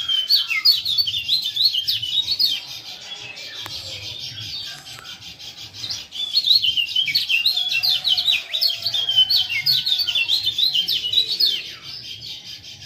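Small birds chirp and trill rapidly nearby.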